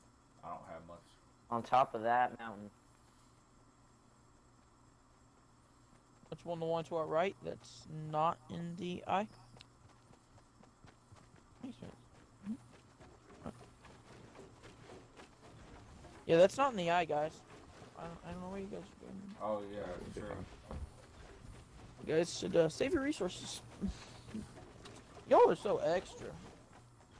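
Footsteps run across grass and then up wooden ramps.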